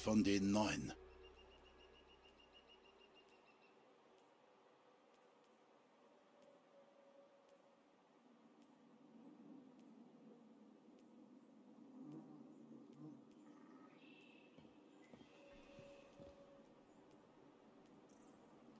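Soft menu clicks tick again and again.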